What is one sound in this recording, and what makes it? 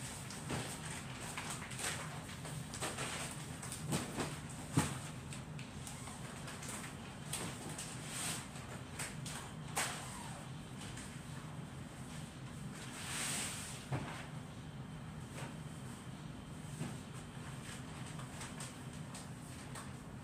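Pillows rustle and thump as they are handled.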